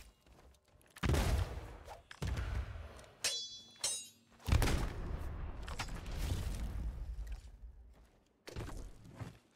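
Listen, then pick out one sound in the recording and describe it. A skeleton bursts apart with a whooshing puff.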